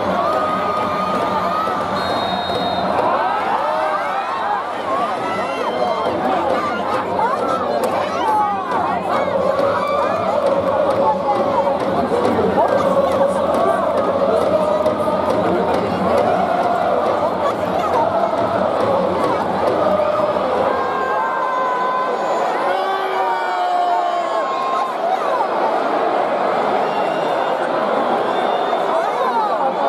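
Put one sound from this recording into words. A large stadium crowd chants and sings loudly outdoors.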